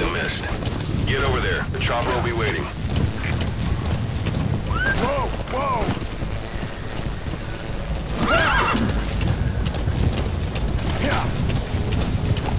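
A horse gallops, its hooves thudding on the ground.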